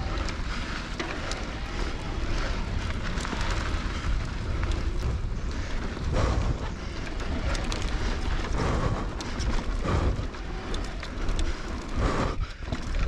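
A bicycle rattles and clatters over bumps.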